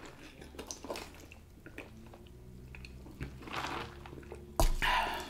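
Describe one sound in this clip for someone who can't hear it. A woman sips a drink through a straw close to a microphone.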